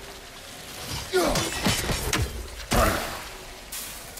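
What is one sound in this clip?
An axe strikes with heavy thuds.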